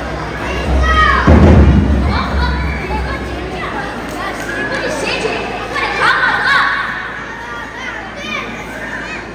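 A young girl shouts lines with animation.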